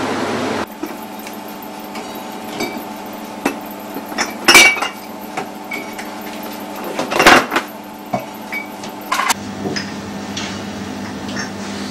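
Glass bottles clink as they are stacked.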